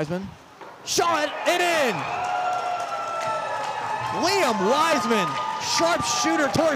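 A crowd cheers loudly in an echoing rink.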